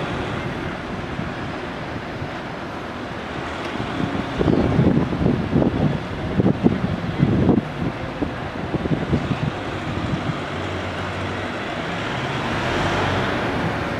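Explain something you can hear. A van engine hums as it slowly turns around nearby.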